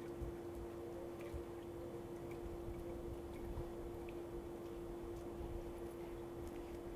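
Water laps gently against the sides of a pool.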